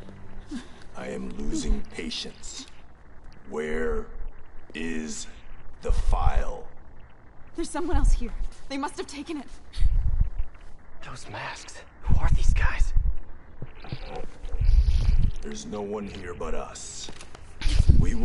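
A man speaks menacingly.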